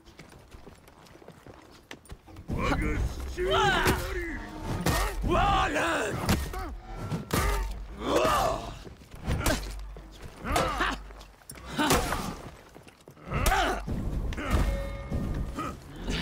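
Metal weapons clash and clang in quick blows.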